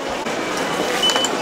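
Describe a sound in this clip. A ticket gate beeps as a phone is tapped on its reader.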